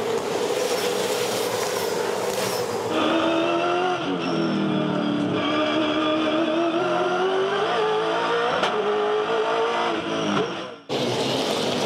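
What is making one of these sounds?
A race car engine roars close by at high revs, shifting gears up and down.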